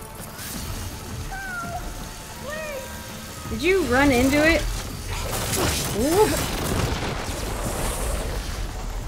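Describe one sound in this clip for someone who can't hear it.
Icy energy bursts with a crackling hiss.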